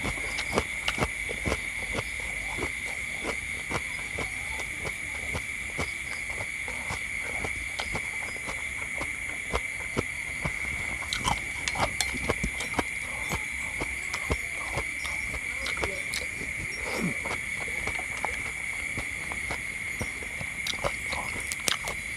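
A man chews with smacking lips, close to the microphone.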